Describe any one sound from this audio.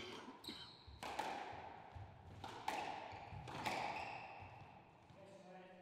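A squash ball smacks hard against walls, echoing around the court.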